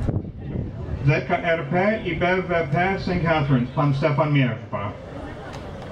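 A man speaks steadily through a loudspeaker outdoors.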